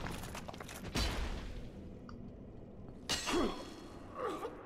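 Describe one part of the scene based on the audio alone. Metal armour clanks in a clash of swords.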